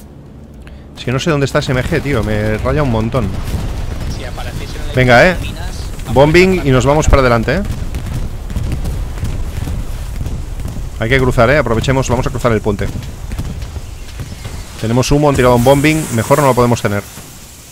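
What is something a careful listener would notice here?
Game gunfire and explosions rumble in the background.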